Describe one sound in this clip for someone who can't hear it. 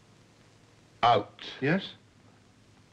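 A younger man speaks calmly, close to a microphone.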